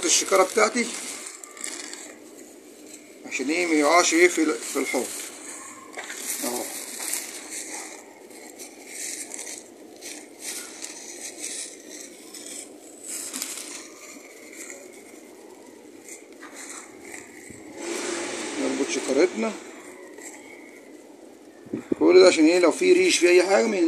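A plastic mesh bag rustles and crinkles in hands.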